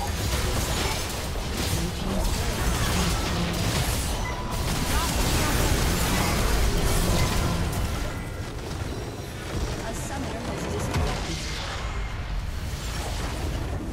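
Game spell effects and attacks crash and clash rapidly.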